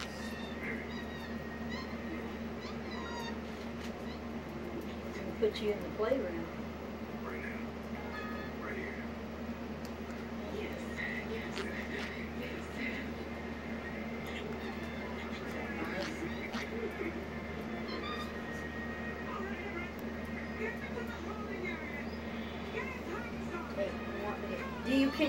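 A small monkey licks and smacks its lips softly, close by.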